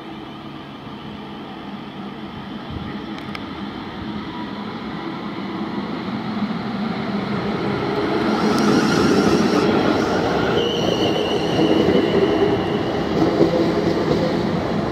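A train approaches and rumbles past close by, growing louder.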